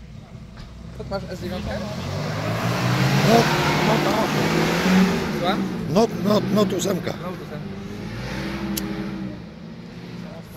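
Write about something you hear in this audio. An off-road vehicle's engine roars and strains as it climbs nearby.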